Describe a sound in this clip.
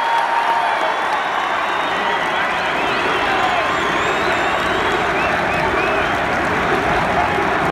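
A large crowd murmurs and cheers in the arena.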